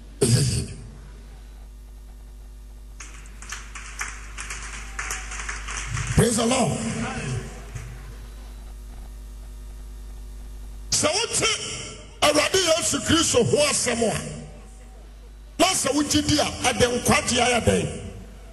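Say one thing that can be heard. A man preaches with passion into a microphone, his voice carrying through loudspeakers.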